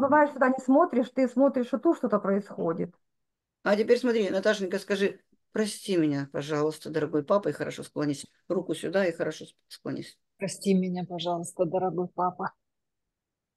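An older woman talks calmly over an online call.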